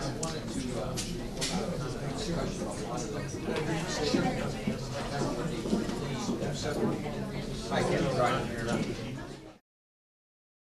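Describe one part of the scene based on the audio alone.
Several adult men and women chat with one another, with overlapping voices.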